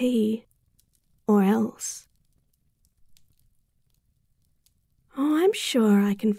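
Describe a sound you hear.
A young woman speaks softly and playfully, close to a microphone.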